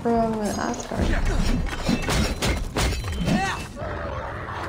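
Wolves snarl and growl while fighting.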